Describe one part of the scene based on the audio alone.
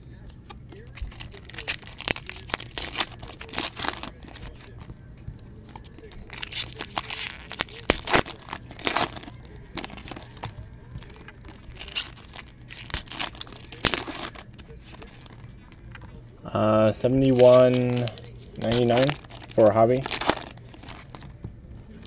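Foil card packs crinkle and rip open in quick bursts.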